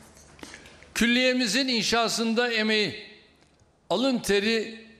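An elderly man speaks firmly into a microphone.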